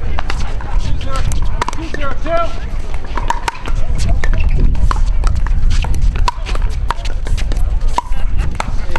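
Paddles pop against a plastic ball in a quick rally.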